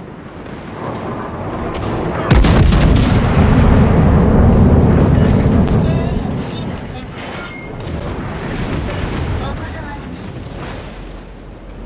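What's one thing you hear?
Heavy naval guns fire with deep, rumbling booms.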